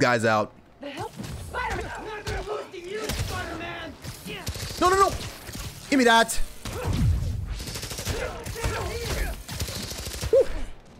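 Punches and blasts crackle in a video game fight.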